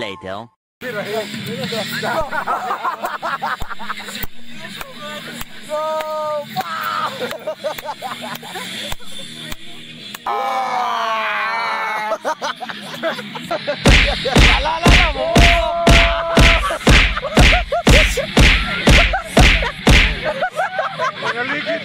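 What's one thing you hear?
Young people shout and laugh close by.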